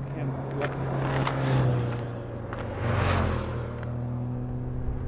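A motorcycle engine roars past close by.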